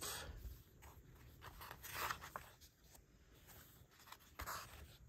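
Paper pages rustle and flip as a book's pages are turned by hand.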